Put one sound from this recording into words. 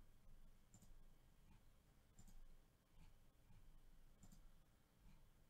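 A computer mouse clicks a few times.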